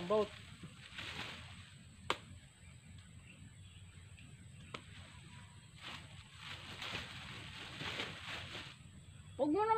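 Leaves rustle as branches are handled.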